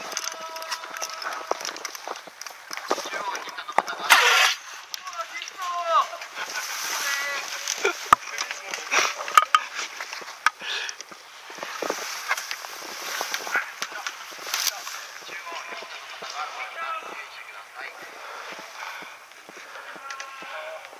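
Dry grass rustles and crackles as someone pushes through it on foot.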